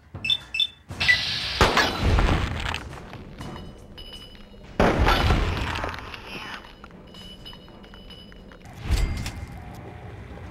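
A gun fires loud blasts that ring out.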